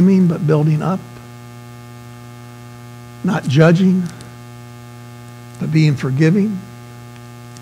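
A middle-aged man speaks calmly into a microphone, pausing between short phrases.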